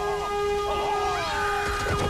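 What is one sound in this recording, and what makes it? A young woman screams and sobs in distress.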